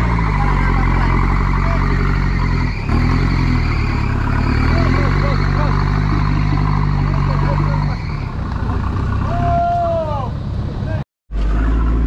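An off-road engine revs hard and strains in thick mud.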